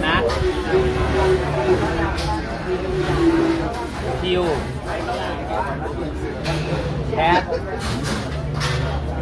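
Several teenage boys talk and chatter nearby.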